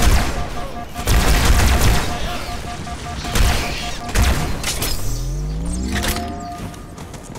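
Gunfire bursts out in loud, rapid shots.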